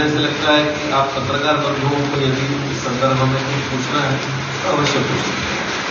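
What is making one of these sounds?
A man speaks calmly into a microphone, amplified in a room.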